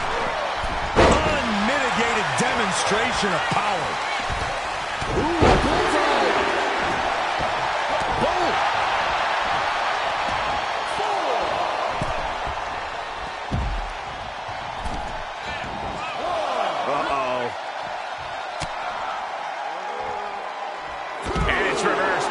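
Heavy bodies slam down with loud thuds.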